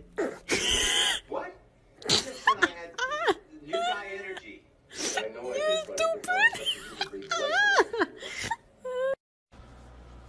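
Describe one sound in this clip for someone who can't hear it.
A cat meows repeatedly.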